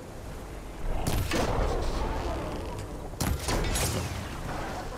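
Loud electric blasts crackle and boom.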